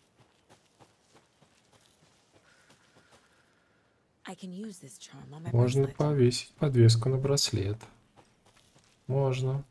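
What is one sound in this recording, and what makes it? Footsteps crunch softly on a forest path.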